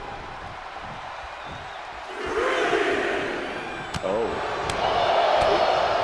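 A wrestler's boot strikes an opponent with a thud.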